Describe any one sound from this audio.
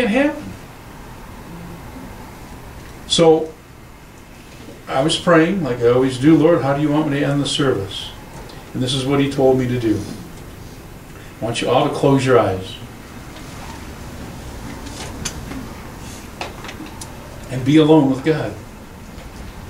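A middle-aged man preaches into a microphone in bursts, with pauses, in an echoing hall.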